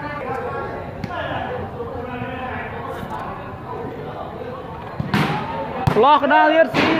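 A ball is struck with a thump.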